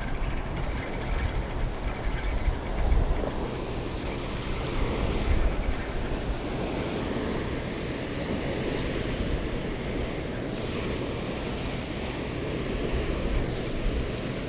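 Wind blows in gusts outdoors.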